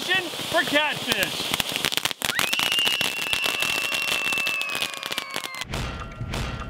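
Firecrackers pop rapidly.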